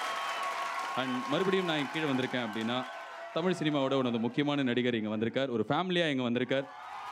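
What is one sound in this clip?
A man speaks into a microphone, heard through loudspeakers.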